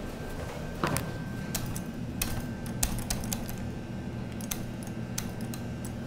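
Elevator buttons click as they are pressed.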